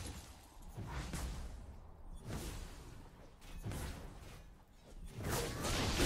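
Game spell effects whoosh and crackle in bursts.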